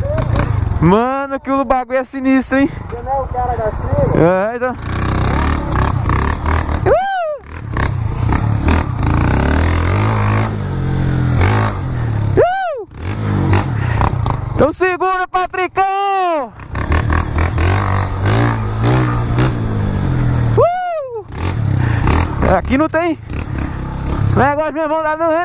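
A motorcycle engine hums and revs.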